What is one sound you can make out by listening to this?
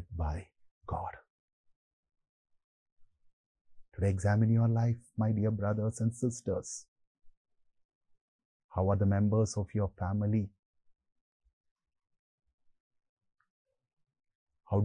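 A man speaks calmly and clearly into a microphone, with pauses between phrases.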